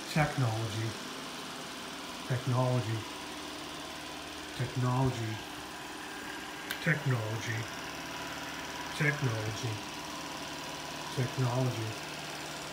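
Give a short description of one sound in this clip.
A robot vacuum hums steadily.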